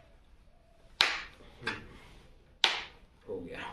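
A plastic helmet clicks and knocks as it is handled.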